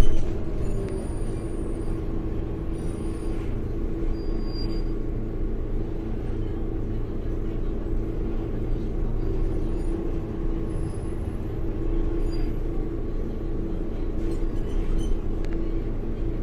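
A bus engine hums and rumbles steadily while the bus drives along.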